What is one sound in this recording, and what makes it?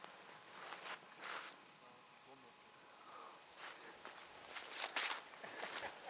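Dry grass rustles and crunches underfoot in short bursts.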